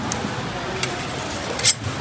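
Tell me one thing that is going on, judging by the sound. A knife scrapes on a sharpening stone.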